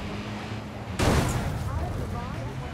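Cars crash into each other with a loud bang.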